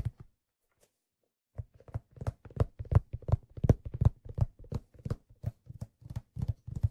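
A hand drum is struck in a quick, lively rhythm close to the microphones.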